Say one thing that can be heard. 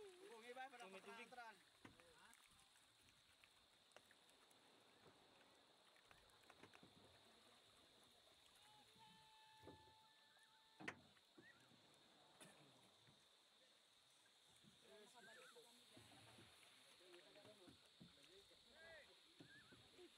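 Water splashes against the side of a small boat.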